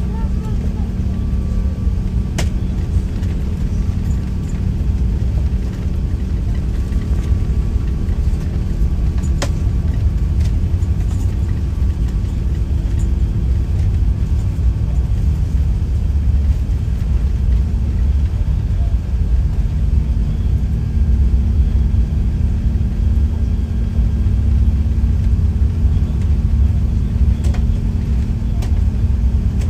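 Landing gear rumbles and thumps over the runway.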